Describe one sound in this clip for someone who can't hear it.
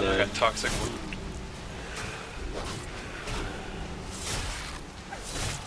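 Magic spell effects whoosh and crackle in bursts.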